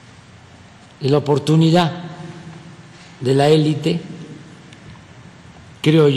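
A man speaks through a microphone in short, calm phrases in a large echoing hall.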